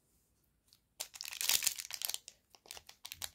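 A foil wrapper crinkles in hands.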